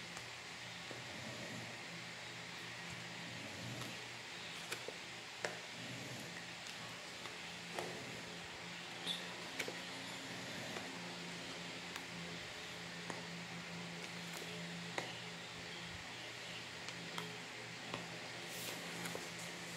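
Cards are laid down one by one with soft taps.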